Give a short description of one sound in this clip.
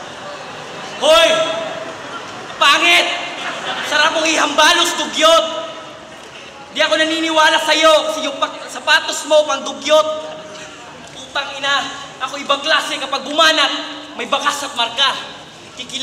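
A young man raps loudly into a microphone over a loudspeaker, in a large echoing space.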